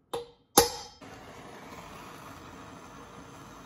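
A gas torch hisses steadily.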